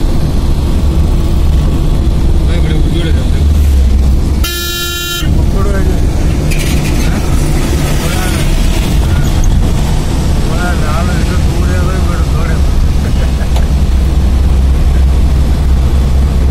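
A vehicle engine rumbles steadily while driving on a road.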